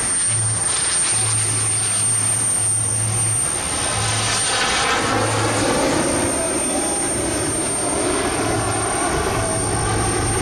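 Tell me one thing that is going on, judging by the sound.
A jet engine roars loudly overhead, rushing and rumbling as it passes.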